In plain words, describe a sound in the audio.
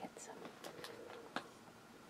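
Plastic packaging crinkles close to the microphone.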